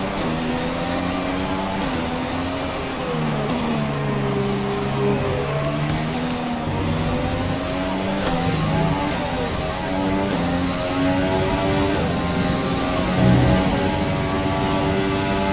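A racing car engine screams, its pitch rising and falling as the car shifts gears and brakes.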